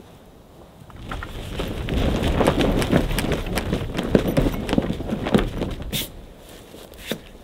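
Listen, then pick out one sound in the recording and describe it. Awning fabric rustles and flaps as it is pulled open.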